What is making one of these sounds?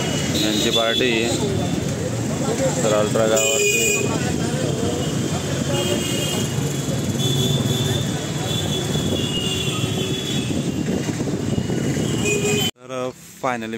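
Loud music with singing blares from loudspeakers outdoors.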